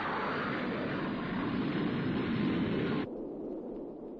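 Spaceships roar past.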